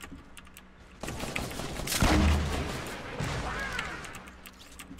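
A pickaxe swooshes and strikes in a game.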